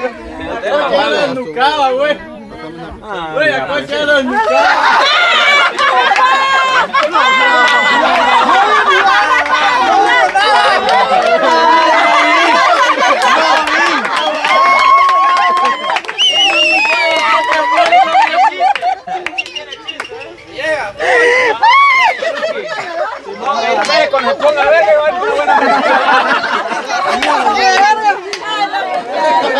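A crowd of people chatter and laugh.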